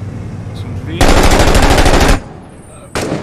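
A rifle fires a rapid burst at close range.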